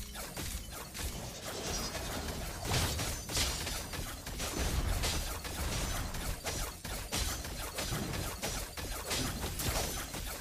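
Game sound effects of swooshing attacks and impacts play rapidly.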